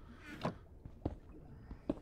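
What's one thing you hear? A pickaxe breaks stone blocks with crunching knocks.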